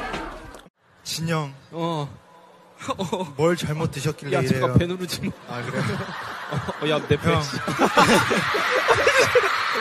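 A young man speaks on stage through a microphone.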